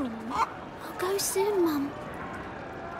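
A young boy answers softly.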